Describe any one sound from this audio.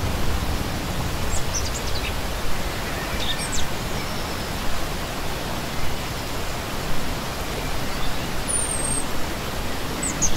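A shallow stream rushes and burbles over rocks close by.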